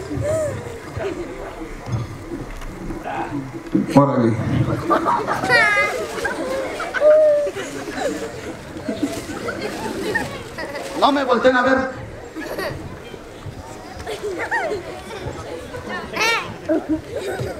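Children shout and chatter excitedly outdoors.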